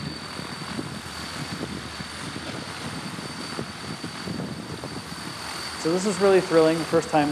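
Many propellers whir steadily with a high whine, outdoors in gusty wind.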